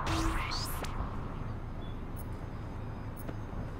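Footsteps run across concrete.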